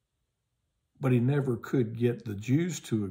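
An older man speaks with animation close to a microphone.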